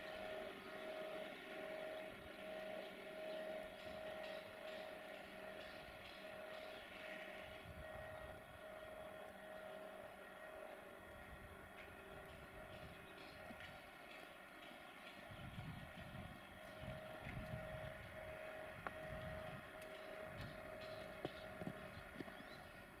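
A train's wheels clatter and squeal on the rails.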